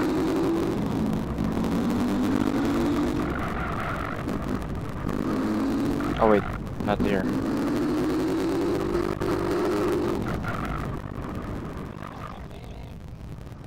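A motorcycle engine revs and hums steadily, rising and falling in pitch.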